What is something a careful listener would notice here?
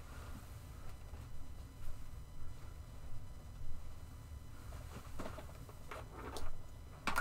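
Objects clatter and rustle as a person rummages on a shelf.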